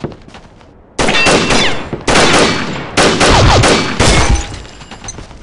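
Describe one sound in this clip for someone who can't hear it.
A gun fires in rapid loud bursts.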